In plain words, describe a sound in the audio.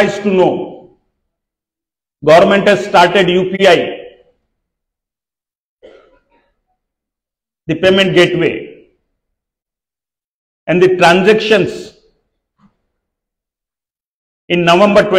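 A middle-aged man speaks slowly and formally into a microphone over loudspeakers, with pauses between phrases.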